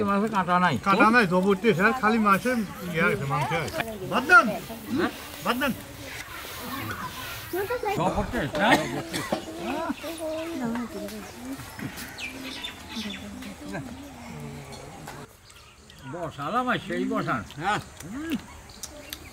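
Elderly men talk calmly and with animation close by.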